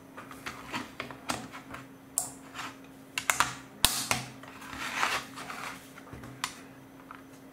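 Plastic toy bricks click and rattle as they are pressed together and moved on a wooden table.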